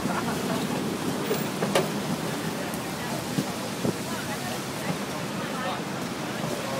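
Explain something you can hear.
A crowd of men and women talk nearby outdoors.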